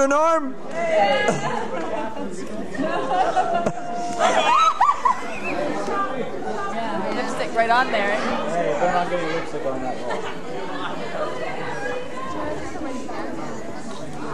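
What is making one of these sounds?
A crowd of men and women chatter and laugh outdoors.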